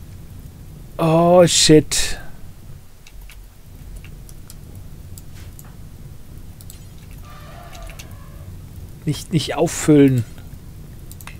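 An elderly man talks with animation close to a microphone.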